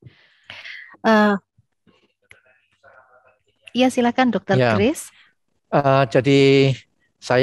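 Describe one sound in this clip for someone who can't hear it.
A woman speaks with animation through a headset microphone on an online call.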